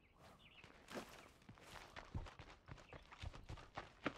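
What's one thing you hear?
Footsteps tread on dirt ground.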